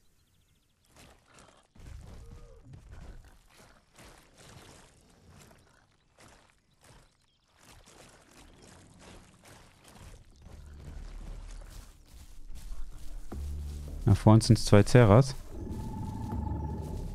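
Footsteps of a large creature thud on dirt and grass.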